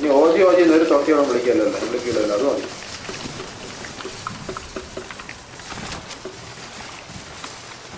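Water splashes and sloshes as a swimmer moves through it.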